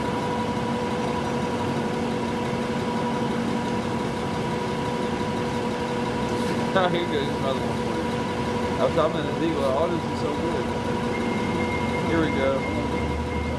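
A bus engine idles steadily on a street outdoors.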